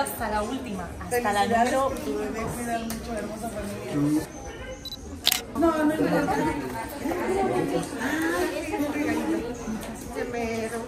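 A young woman talks cheerfully and close by.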